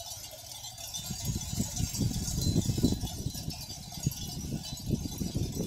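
Wind rumbles loudly outdoors.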